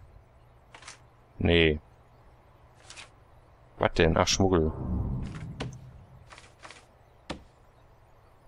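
Short soft clicks of a game menu sound now and then.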